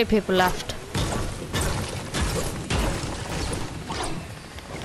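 Rifle shots crack in a video game.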